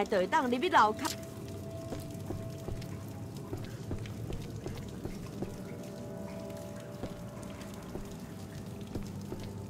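Footsteps thud on creaky wooden boards.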